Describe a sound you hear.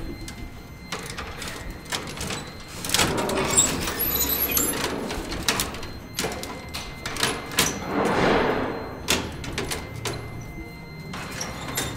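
A metal folding gate rattles and clatters as it slides shut.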